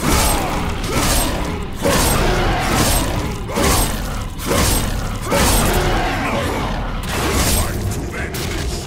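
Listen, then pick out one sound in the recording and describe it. Heavy blows strike again and again with loud crashing thuds.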